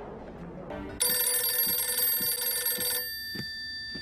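A telephone bell rings loudly.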